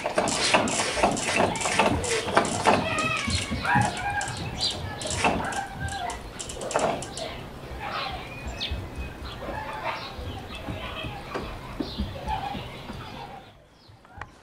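Small objects click and rattle as hands handle them.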